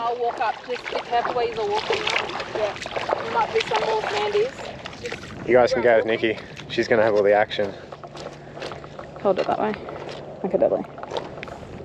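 Feet splash and squelch through shallow water and mud.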